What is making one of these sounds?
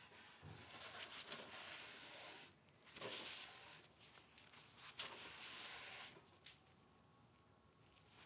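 A cloth rubs softly over a wooden surface.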